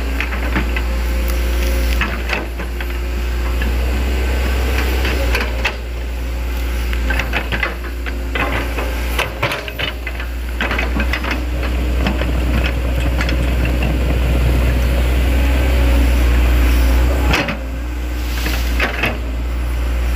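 An excavator bucket scrapes and thuds into soil.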